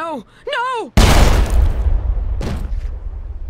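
A gunshot rings out loudly with a booming echo.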